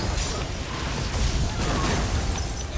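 A fiery explosion bursts loudly.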